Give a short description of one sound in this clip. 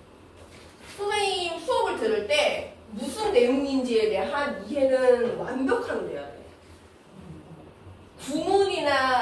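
A woman speaks clearly and calmly through a microphone.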